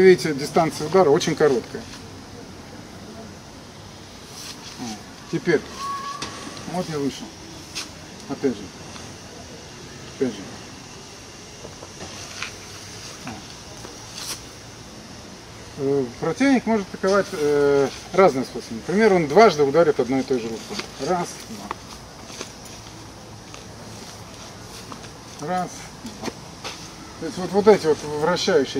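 A middle-aged man speaks calmly and explains, close by.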